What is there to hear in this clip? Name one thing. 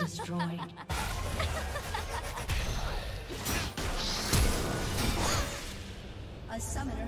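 Game spell effects crackle and boom during a fight.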